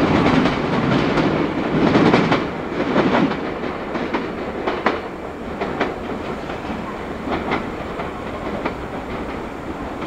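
A train approaches and rolls slowly to a stop.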